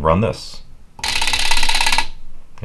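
Relays clatter rapidly.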